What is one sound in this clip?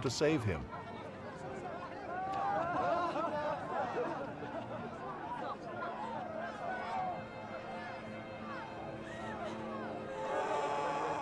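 A crowd of men jeers and shouts.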